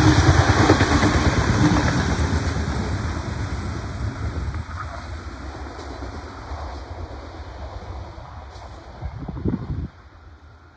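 A passenger train rumbles past close by and fades into the distance.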